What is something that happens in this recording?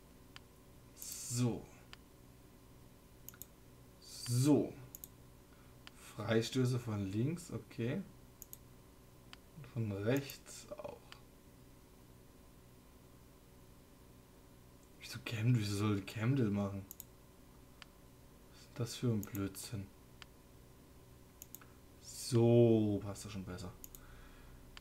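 A young man talks calmly in short bursts close to a microphone.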